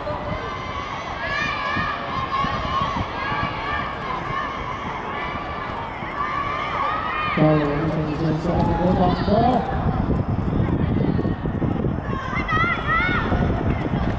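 Children shout and cheer loudly nearby.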